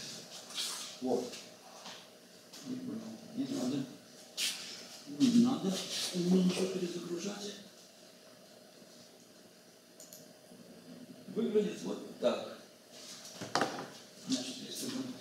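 An elderly man speaks calmly, lecturing in an echoing room.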